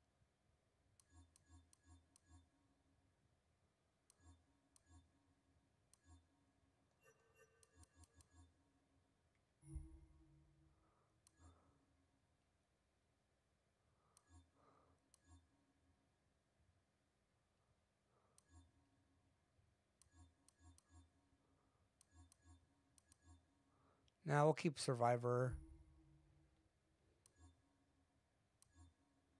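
Soft game menu clicks tick repeatedly.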